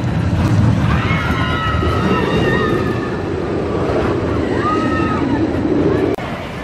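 Roller coaster wheels squeal on the rails.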